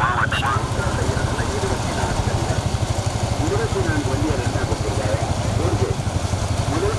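Racing bullock carts rumble along a paved road.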